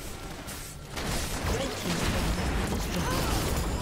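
A tower crumbles with a loud crash.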